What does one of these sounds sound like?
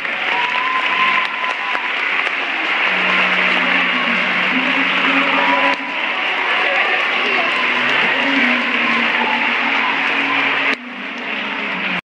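Many children chatter and call out loudly in a large echoing hall.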